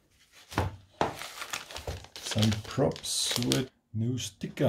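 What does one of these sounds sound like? A plastic bag crinkles and rustles in hands.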